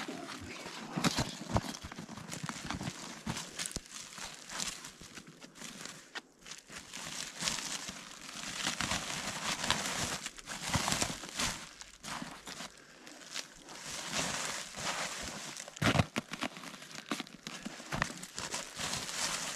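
A plastic sack rustles and crinkles as fish are put into it.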